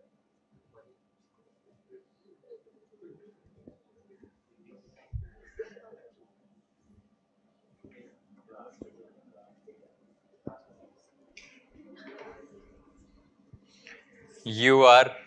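A small audience murmurs and chuckles.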